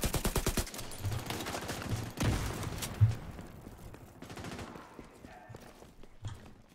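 Explosions boom in short thuds.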